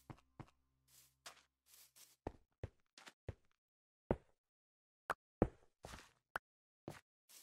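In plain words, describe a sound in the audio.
Blocks of dirt and stone crunch as they are broken, with quick knocking taps.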